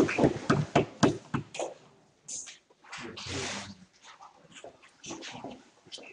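Objects knock and rustle close to the microphone.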